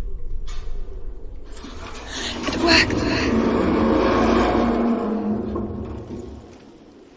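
A heavy metal door grinds as it is pushed open.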